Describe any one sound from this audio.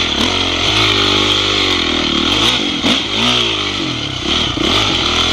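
A dirt bike engine revs up and down.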